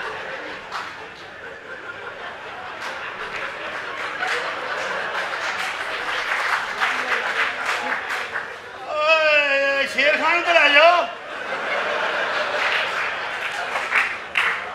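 A man talks loudly and with animation close by.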